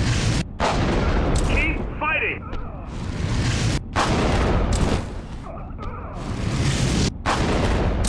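Heavy thuds land as a giant brute smashes into enemies.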